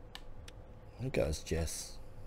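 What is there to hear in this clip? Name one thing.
A young man speaks briefly into a microphone, close up.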